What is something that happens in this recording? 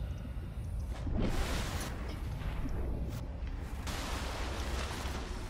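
Water splashes and churns as a diver breaks the surface.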